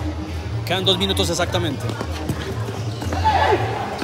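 A ball thuds off a player's foot.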